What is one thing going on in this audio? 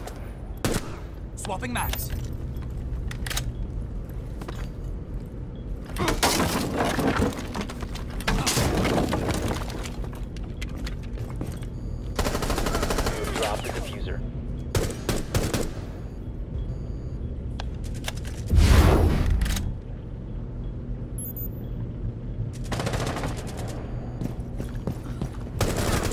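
A rifle fires sharp shots in quick bursts.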